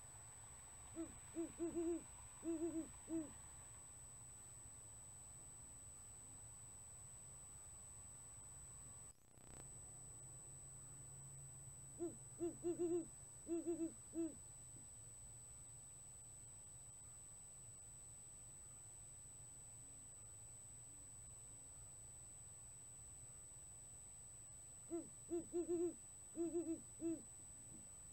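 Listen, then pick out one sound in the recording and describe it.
A great horned owl gives a rhythmic series of deep hoots.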